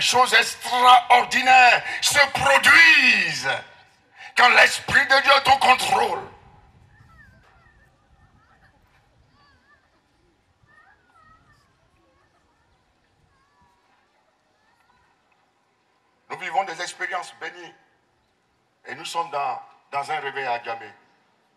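A man preaches loudly and with passion through a microphone and loudspeakers, pausing between bursts.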